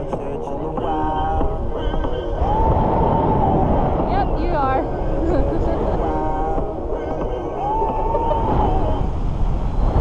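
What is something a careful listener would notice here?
A young woman shrieks and squeals with delight close by.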